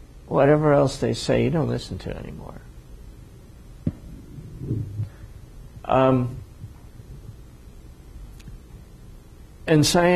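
An older man speaks into a clip-on microphone with pauses, in a slow, deliberate way.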